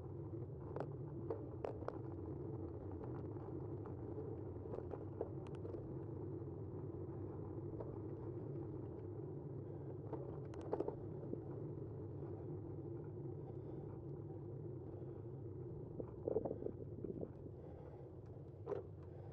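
Small hard wheels roll steadily over rough asphalt with a low rumble.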